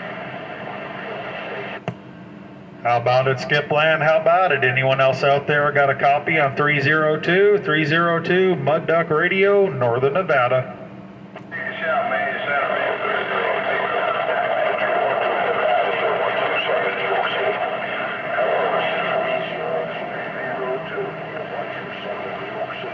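A radio speaker hisses with static.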